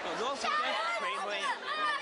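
A woman speaks loudly and animatedly close by.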